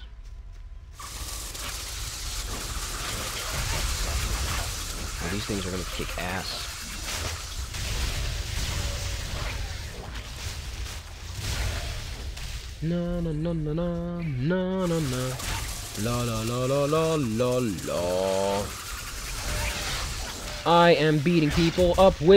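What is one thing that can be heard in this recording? Spell effects crackle and whoosh in a fight.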